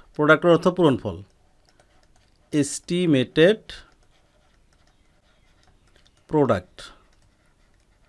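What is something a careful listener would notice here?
A man speaks calmly and clearly into a close microphone, in short phrases with pauses.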